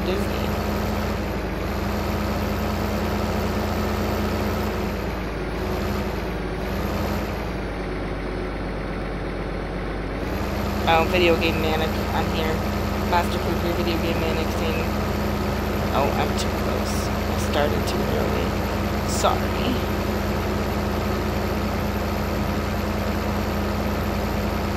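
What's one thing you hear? A tractor engine drones steadily.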